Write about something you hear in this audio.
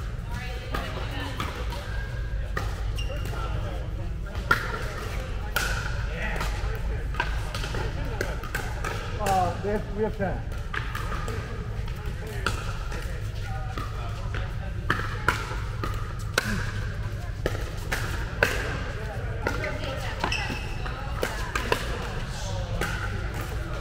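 Paddles strike a plastic ball with sharp pops, over and over.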